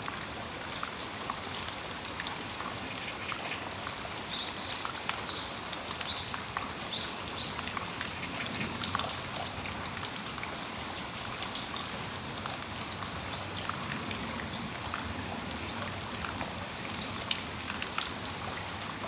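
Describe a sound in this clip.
Raindrops drip and tap close by.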